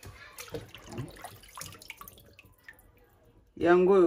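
Water splashes and sloshes in a basin.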